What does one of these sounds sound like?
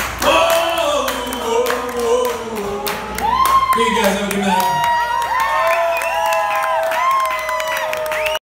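A crowd claps loudly close by.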